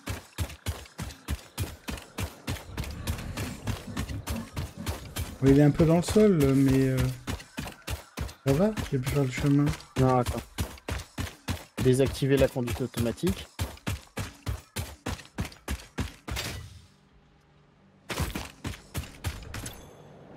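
Quick footsteps crunch on sand.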